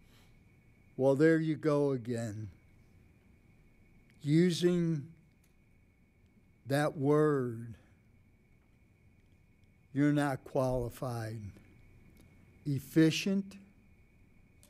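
A man speaks in short phrases through a microphone in a large room.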